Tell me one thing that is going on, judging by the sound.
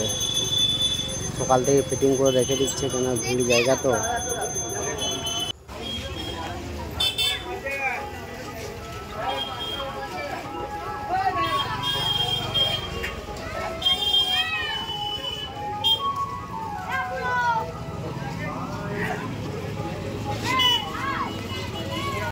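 Men shout to each other nearby.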